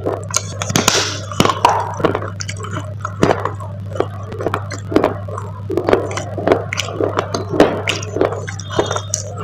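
A person crunches and chews a crisp snack close to a microphone.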